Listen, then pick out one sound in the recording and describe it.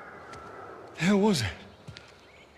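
A man asks a short question in a rough voice.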